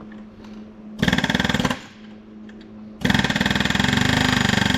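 A power tool whirs loudly in short bursts.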